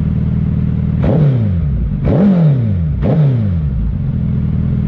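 A motorcycle engine revs sharply three times and drops back.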